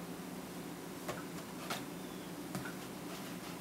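A metal utensil clinks and scrapes against a plastic tub.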